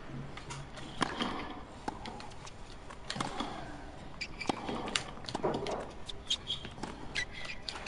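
A tennis ball is struck by rackets in a quick rally.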